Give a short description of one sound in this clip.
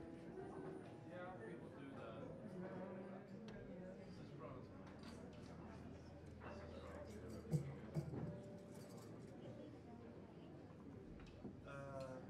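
An electric guitar plays a soft jazz melody.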